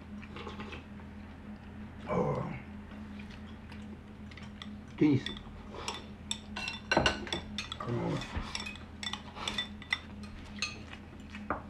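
Chopsticks clink against a bowl.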